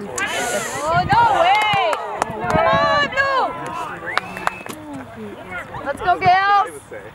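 Young players shout and call out to each other outdoors across an open field.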